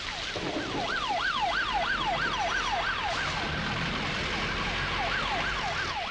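A vehicle engine rumbles as it drives through rain.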